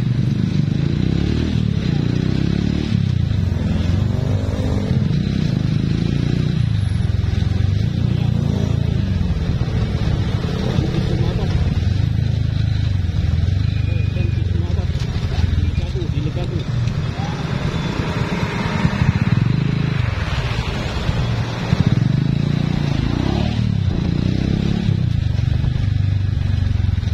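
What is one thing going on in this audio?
A motorcycle engine hums steadily up close as it rides along a road.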